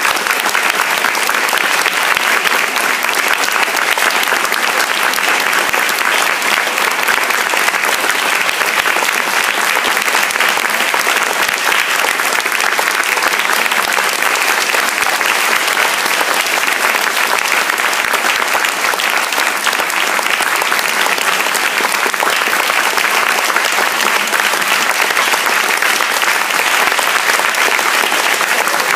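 An orchestra plays loudly in a large hall.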